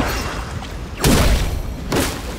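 A heavy blow smashes into rock with a loud crash.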